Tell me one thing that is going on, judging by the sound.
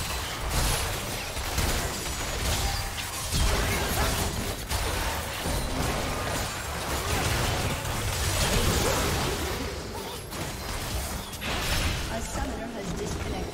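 Game spells and attacks crackle and boom in a busy fight.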